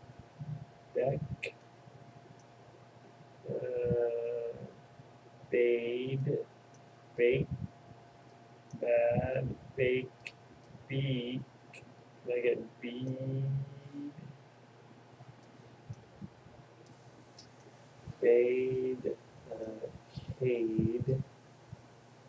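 A young man speaks in short bursts, close to a microphone.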